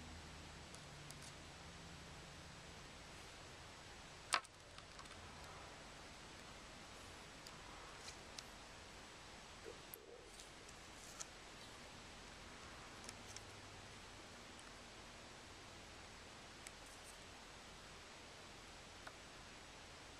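Small plastic pieces click and tap lightly against a hard surface close by.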